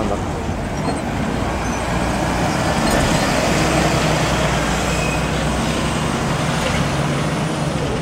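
An articulated city bus drives past close by.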